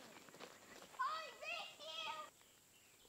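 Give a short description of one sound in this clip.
A young child shouts excitedly from a distance.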